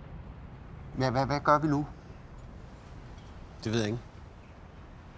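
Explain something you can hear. A man speaks a few short words close by.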